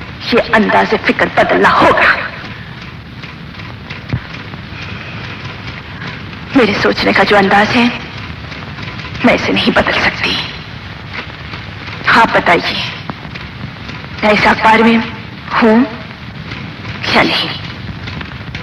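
A woman speaks firmly and with feeling, close by, in bursts with pauses.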